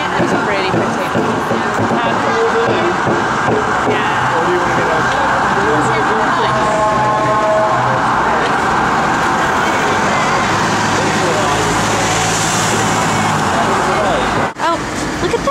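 Traffic rumbles past on a street.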